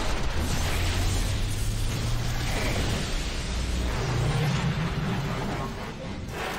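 Explosions boom and crackle in quick succession.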